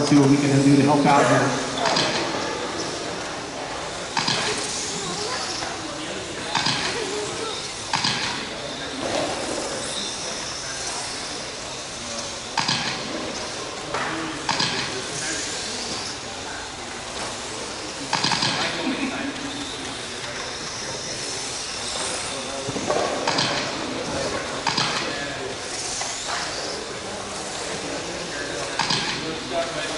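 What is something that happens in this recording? Radio-controlled cars knock sharply against track barriers.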